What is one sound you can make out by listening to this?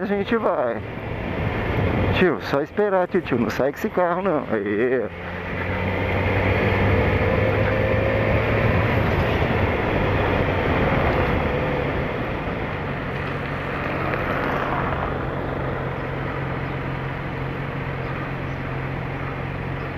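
Tyres rumble over cobblestones.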